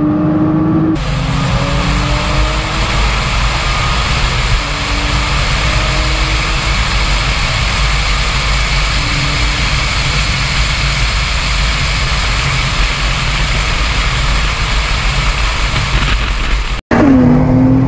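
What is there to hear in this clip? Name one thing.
Wind and road noise rush loudly around a speeding car.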